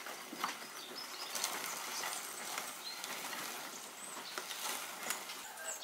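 Nuts rattle and clink as they are poured into a glass bowl.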